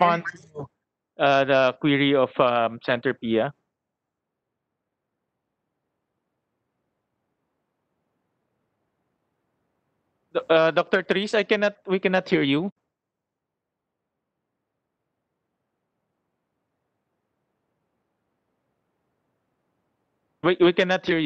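A man speaks calmly into a microphone in short bursts with long pauses.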